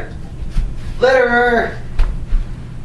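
A teenage boy shouts loudly nearby.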